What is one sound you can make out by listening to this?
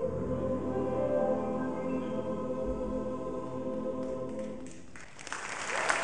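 A large choir sings a held final chord in an echoing hall.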